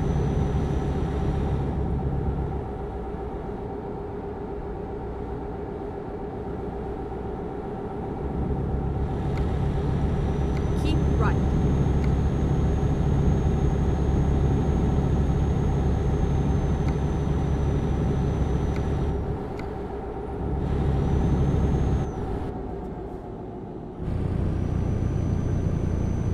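A truck engine hums steadily, rising and falling as the truck drives.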